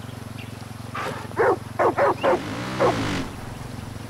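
A dog barks several times close by.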